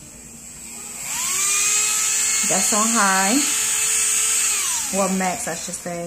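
A small electric nail drill whirs up to speed, hums steadily with a high whine, then winds down.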